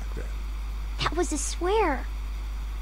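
A young girl speaks softly, close by.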